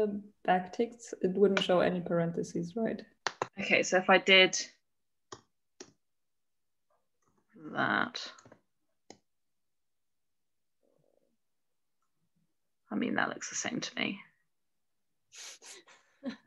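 A young woman speaks calmly into a close microphone, pausing between phrases.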